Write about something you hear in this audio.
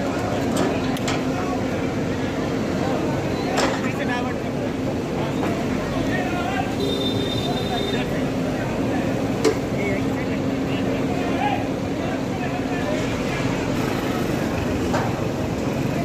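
Metal and debris crash and clatter as a digger bucket tears at a shop front.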